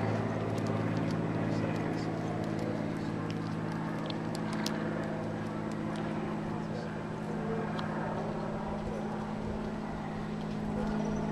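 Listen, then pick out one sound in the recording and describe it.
A horse's hooves thud softly on loose dirt as it walks.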